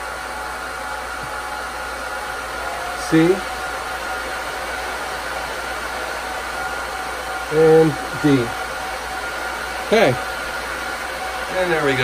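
Server fans hum steadily.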